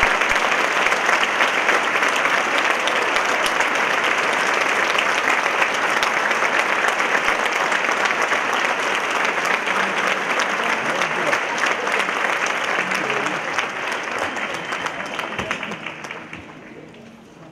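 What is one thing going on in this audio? Loud applause fills a large echoing hall and then fades away.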